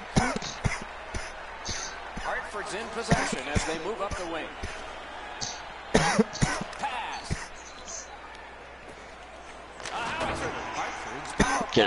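An arena crowd murmurs and cheers.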